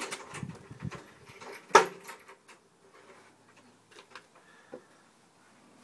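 A metal chain rattles and clinks.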